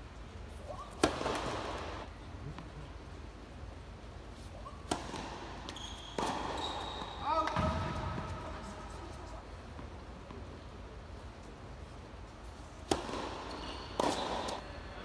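A tennis ball is struck sharply with a racket, echoing in a large indoor hall.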